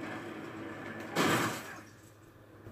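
A gunshot bursts from a video game.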